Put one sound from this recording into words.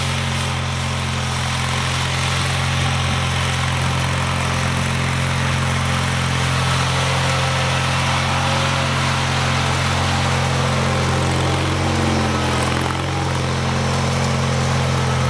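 A small tractor engine chugs steadily, growing louder as it approaches.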